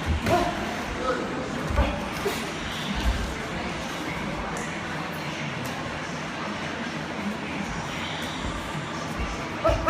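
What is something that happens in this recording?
Boxing shoes shuffle and squeak on a canvas floor.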